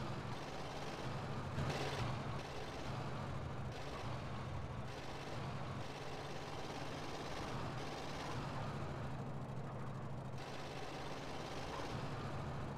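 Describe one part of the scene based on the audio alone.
A truck engine drones steadily as it drives.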